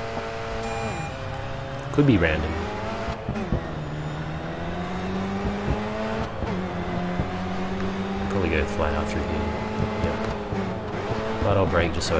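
A racing car engine roars steadily at speed, rising and falling in pitch.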